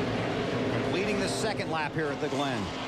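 Race car engines whine past, rising and falling in pitch.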